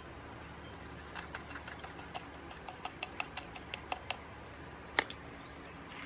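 Small stones tap and click against each other.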